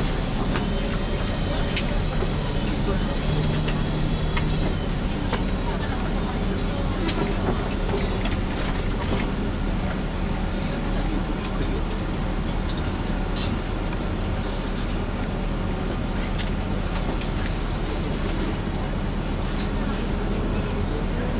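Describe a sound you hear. Loose things in a bus cabin rattle and click as it drives.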